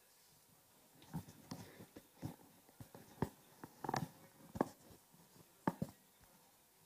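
A headset microphone rustles and knocks as it is adjusted.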